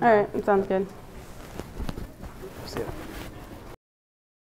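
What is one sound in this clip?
Clothes rustle as two people hug.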